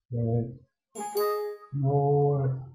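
A computer alert chime rings once.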